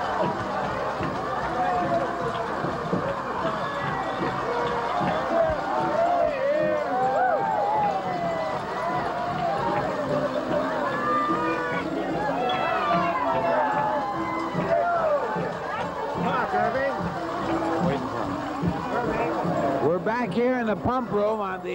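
A large crowd of men and women cheers and shouts excitedly.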